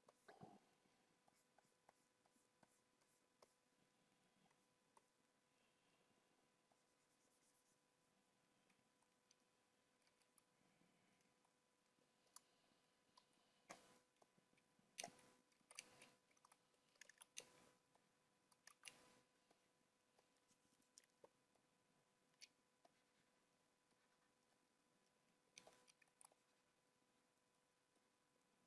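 A man talks quietly and calmly into a microphone.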